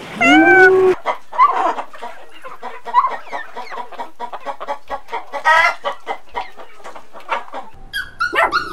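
A chicken clucks in short, quick bursts.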